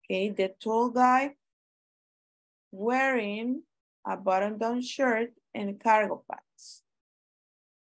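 A woman speaks calmly and clearly over an online call, with short pauses.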